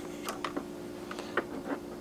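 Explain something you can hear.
A cable plug clicks into a socket on a small device.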